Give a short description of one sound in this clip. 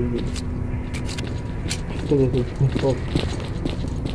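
A pistol is reloaded with metallic clicks.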